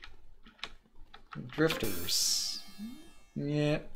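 A video game plays a short electronic buzz as a wrong answer is chosen.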